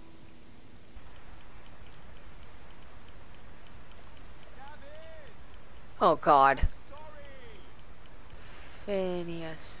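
A fishing reel clicks steadily.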